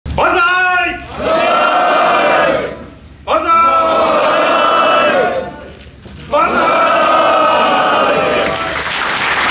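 A group of men and women shout a cheer together in unison, three times over.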